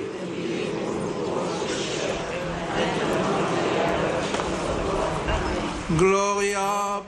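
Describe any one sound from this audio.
A large crowd murmurs outdoors.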